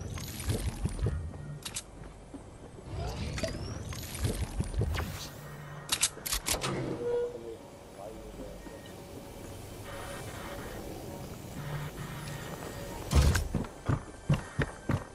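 Footsteps thump quickly across a wooden floor.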